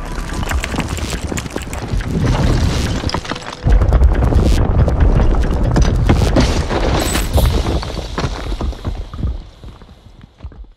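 Tall buildings collapse with a deep, rumbling roar.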